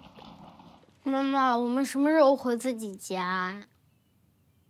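A young boy asks a question, close by.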